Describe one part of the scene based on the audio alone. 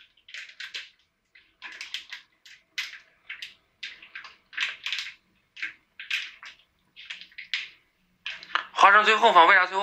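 Plastic packets rustle and crinkle as dry ingredients are shaken into a paper cup.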